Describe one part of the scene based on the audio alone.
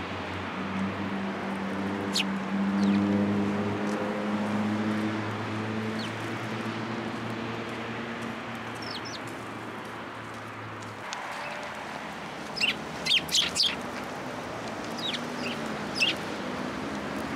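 A small bird pecks at seeds with soft taps.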